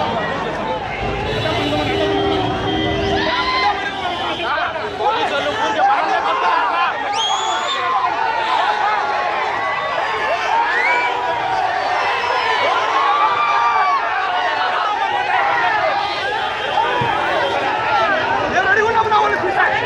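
A large crowd of men shouts and chatters loudly outdoors.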